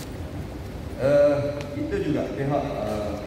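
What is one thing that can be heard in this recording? A man speaks into microphones in a firm, formal voice.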